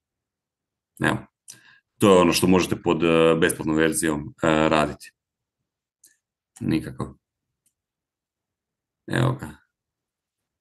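A man speaks calmly in short bursts over an online call.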